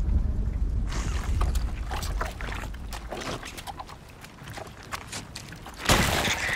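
High heels click on wet stone.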